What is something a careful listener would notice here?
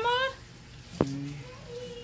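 A metal bowl clanks against a sink.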